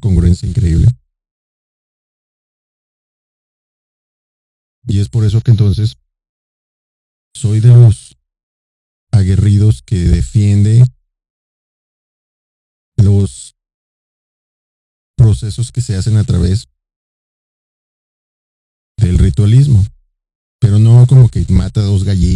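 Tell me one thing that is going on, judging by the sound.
A man speaks slowly and deliberately into a close microphone, with long pauses.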